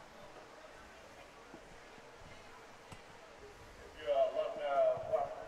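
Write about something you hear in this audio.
A crowd murmurs in the distance outdoors.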